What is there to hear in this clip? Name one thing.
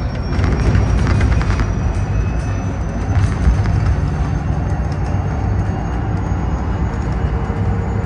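A bus engine rumbles steadily while driving on a highway.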